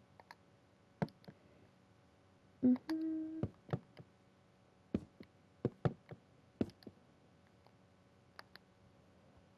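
Wooden blocks knock softly as they are placed, one after another.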